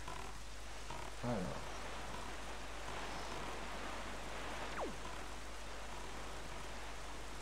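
A small sailboat cuts through choppy water.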